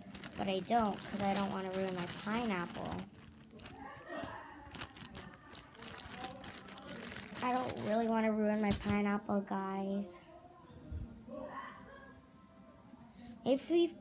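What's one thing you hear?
A girl talks with animation close to the microphone.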